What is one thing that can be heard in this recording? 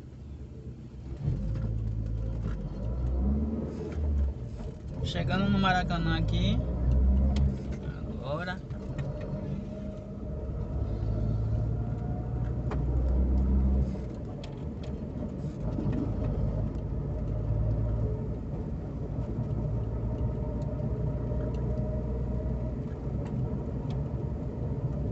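A car engine rumbles low and steadily from inside the car.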